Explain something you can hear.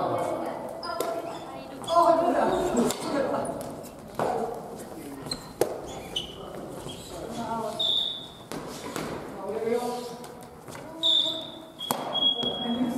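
Shuttlecocks are struck with sharp pops of rackets.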